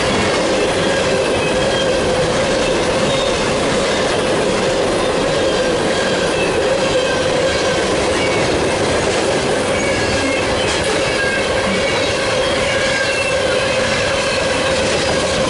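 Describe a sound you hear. A long freight train rumbles past close by, its wheels clattering steadily over the rails.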